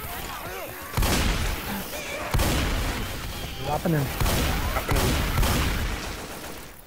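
Shotgun blasts boom loudly in quick succession.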